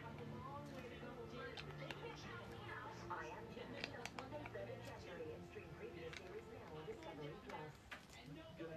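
Plastic toy bricks click and clatter as they are handled.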